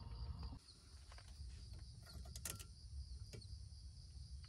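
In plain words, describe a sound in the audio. A spoon clinks against a metal pot.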